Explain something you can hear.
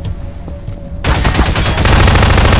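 Gunfire blasts loudly in rapid bursts.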